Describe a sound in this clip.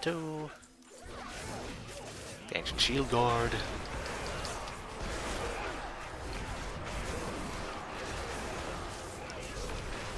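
Spell effects and weapon strikes clash and crackle in a game battle.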